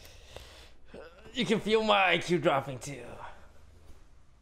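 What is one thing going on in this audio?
A young man laughs loudly and excitedly close to a microphone.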